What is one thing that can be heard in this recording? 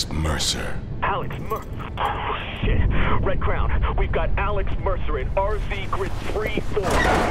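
A man speaks urgently over a crackling radio.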